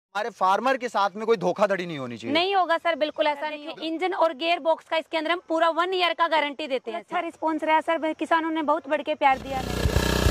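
A young woman speaks clearly and with animation into a microphone.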